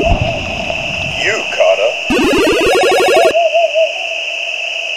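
A short electronic jingle plays for a catch.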